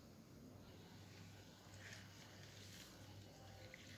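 Leaves rustle and splash in water as a hand stirs them.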